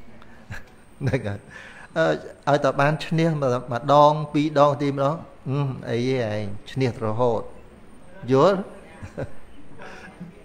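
An elderly man speaks calmly and warmly into a microphone, close by.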